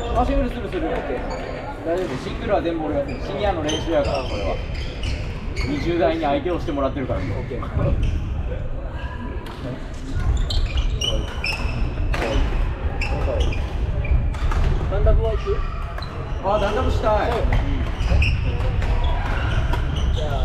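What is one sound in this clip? Shoes squeak on a wooden floor.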